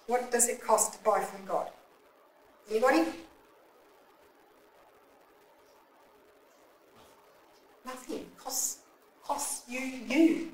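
A middle-aged woman speaks into a microphone in short bursts, with pauses between.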